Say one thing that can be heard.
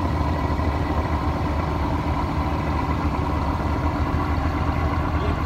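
A boat's diesel engine chugs steadily nearby.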